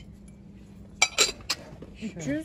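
A glass dish clinks against a shelf.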